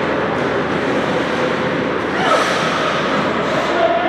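Ice skates scrape across the ice nearby.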